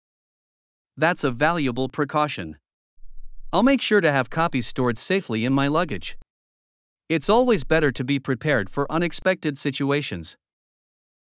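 A man speaks calmly and clearly, as if reading out.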